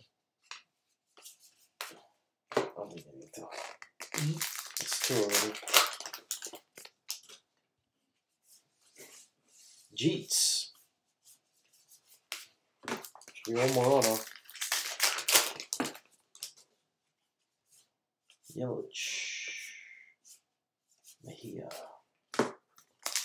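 Trading cards shuffle and slide against each other.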